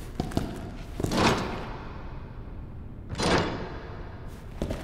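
A metal barred gate creaks and clanks as it swings open.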